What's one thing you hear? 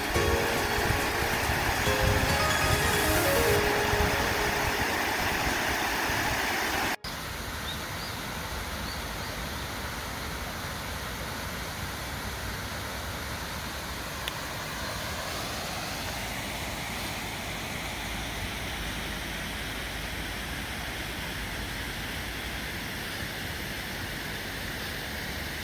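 A small stream of water trickles and splashes over stones.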